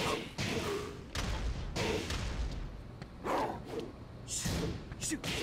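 Heavy punches land with loud, sharp thuds, one after another.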